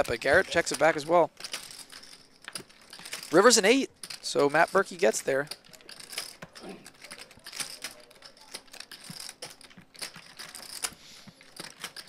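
Poker chips click together on a table.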